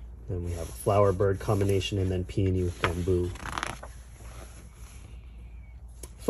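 A book page rustles as it is turned.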